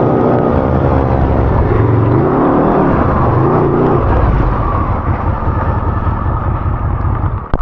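Tyres rumble over rough dirt.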